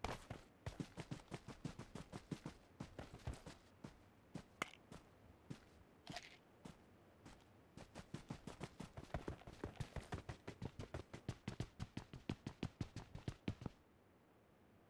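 Quick running footsteps thud on the ground.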